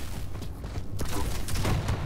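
A game's energy rifle fires a crackling beam in bursts.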